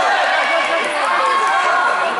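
Adult spectators cheer and shout close by.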